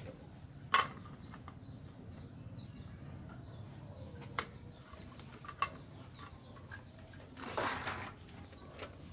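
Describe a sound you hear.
Plastic toys clack and rattle on a wooden floor.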